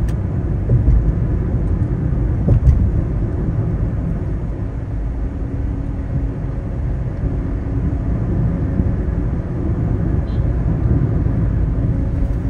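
A vehicle's engine hums steadily.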